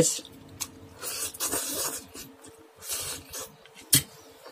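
A man slurps noodles loudly.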